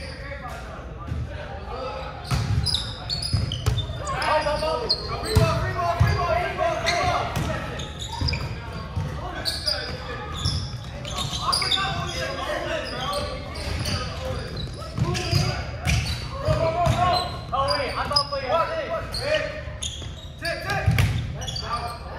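Sneakers squeak on a wooden floor.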